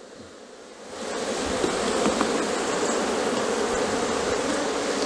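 A bee smoker puffs with a soft hissing rush.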